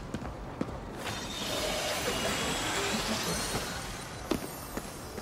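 A crackling energy blast whooshes.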